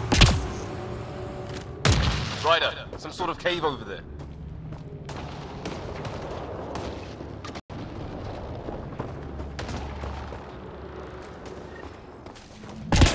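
Footsteps tramp over soft ground.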